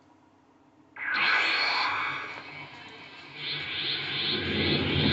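A crackling energy aura roars and surges.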